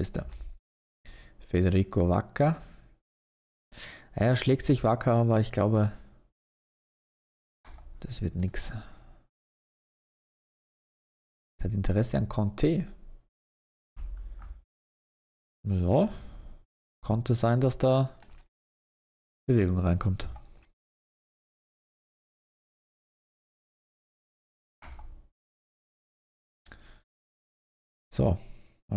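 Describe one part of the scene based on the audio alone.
A man talks calmly into a close microphone, in short bursts with pauses.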